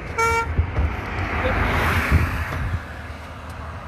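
A car passes by on a road with a whoosh.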